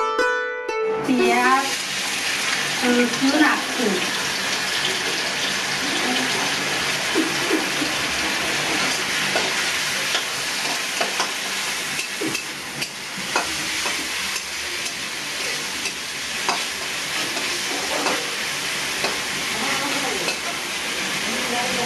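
Food sizzles and crackles as it fries in hot oil.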